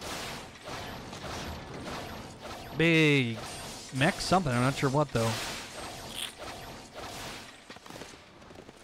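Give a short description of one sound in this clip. Metal blades clash and strike in combat.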